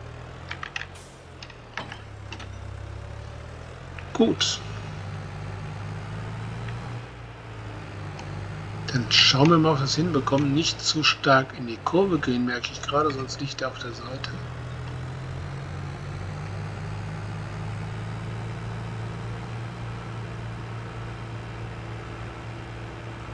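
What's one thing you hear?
A tractor's diesel engine drones as it drives along.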